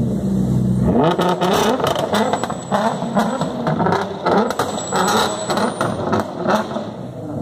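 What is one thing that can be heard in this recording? A sports car engine revs hard and crackles with sharp pops.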